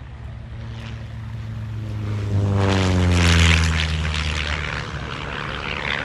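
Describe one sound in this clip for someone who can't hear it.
A small plane flies low overhead, its engine roaring louder and then dropping in pitch as it passes.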